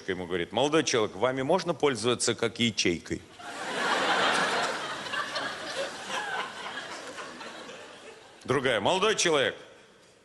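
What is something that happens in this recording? An elderly man reads aloud through a microphone.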